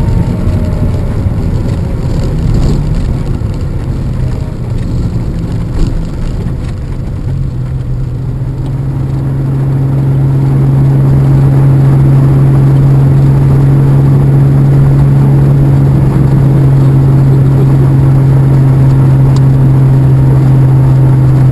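A car engine rumbles and then drones steadily and loudly.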